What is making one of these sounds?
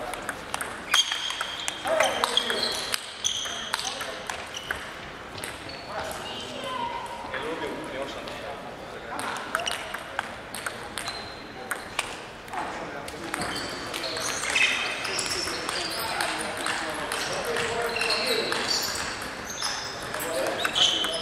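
Shoes squeak on a hall floor.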